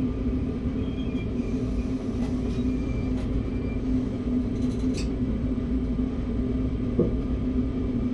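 A train rolls slowly along the rails and comes to a stop.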